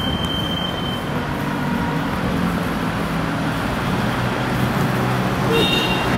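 A bus engine drones as the bus draws closer.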